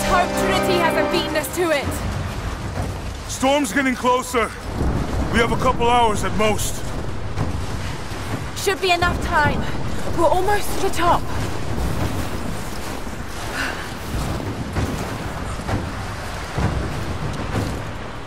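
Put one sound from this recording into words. Strong wind howls and blows snow.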